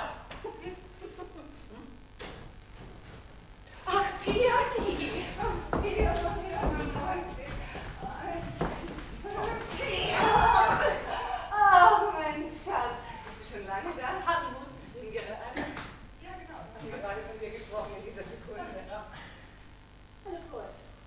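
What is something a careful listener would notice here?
An older woman speaks with animation, heard from a distance in a hall.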